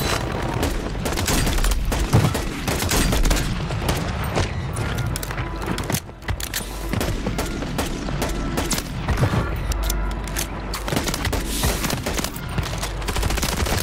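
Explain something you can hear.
Pistol shots bang sharply in quick bursts.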